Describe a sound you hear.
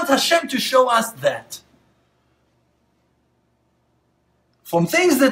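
A man speaks calmly and closely into a microphone, pausing between phrases.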